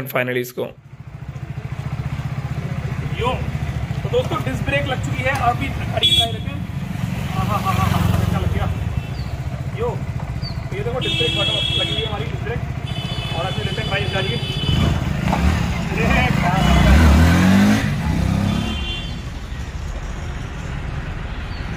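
A motorcycle engine idles with a steady low rumble.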